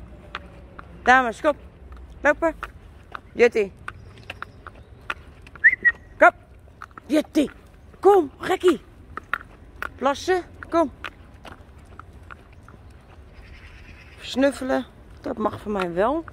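A dog barks and yelps in short bursts nearby.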